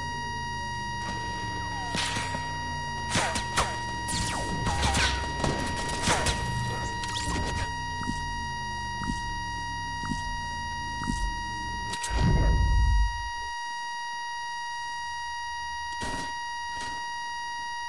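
Footsteps run quickly over dirt and metal floors.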